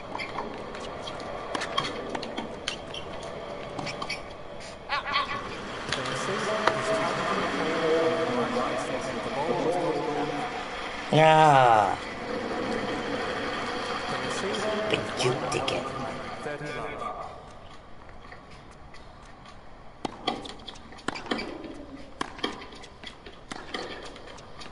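A tennis ball is struck with a racket, with sharp pops back and forth.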